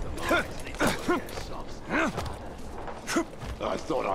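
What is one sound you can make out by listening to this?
Hands and feet thump and scrape on wooden planks during a climb.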